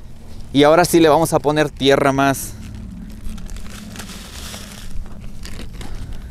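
A hand trowel scrapes into loose soil.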